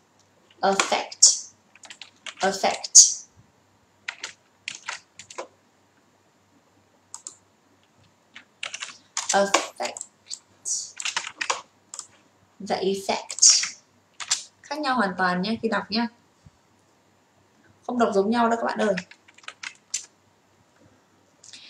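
A young woman speaks with animation into a close microphone, with pauses.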